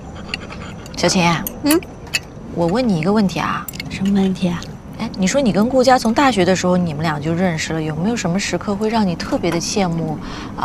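A woman speaks teasingly and calmly, close by.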